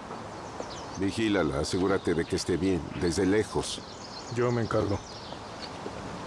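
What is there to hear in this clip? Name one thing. A man speaks in a low, calm voice close by.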